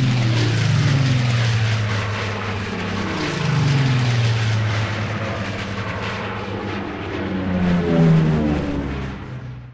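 A small propeller plane's engine drones loudly, its pitch rising and falling.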